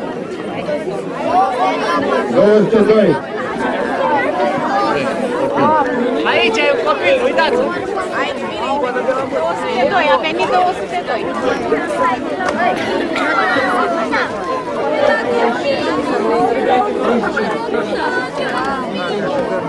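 A crowd of young people chatters nearby.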